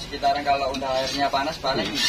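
A metal spatula scrapes across a flat griddle.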